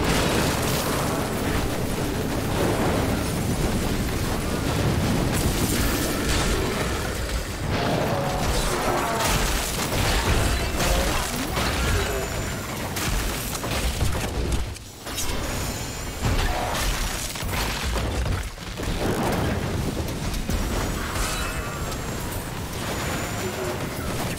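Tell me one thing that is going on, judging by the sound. Magic blasts and explosions crackle and boom in quick succession.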